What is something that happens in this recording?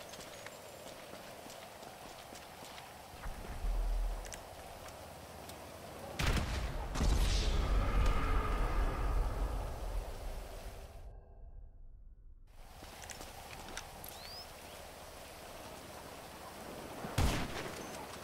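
Rain patters steadily on hard ground.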